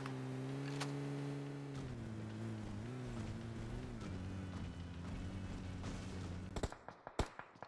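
A vehicle engine roars and revs.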